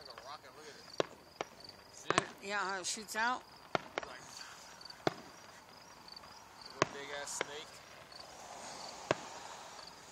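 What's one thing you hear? Fireworks burst with sharp bangs in the distance.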